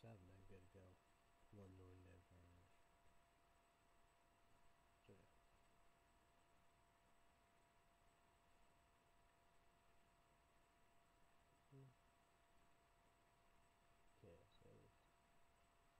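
A young man speaks quietly and briefly, close to the microphone, with long pauses.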